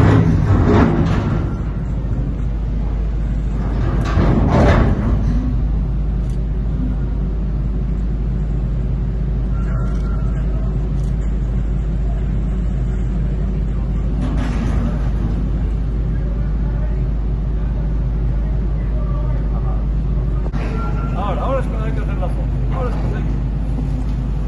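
An excavator engine rumbles steadily in the distance.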